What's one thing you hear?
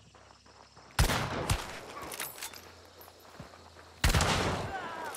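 A rifle fires two loud shots that ring out outdoors.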